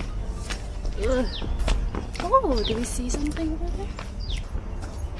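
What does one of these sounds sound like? A young woman talks nearby.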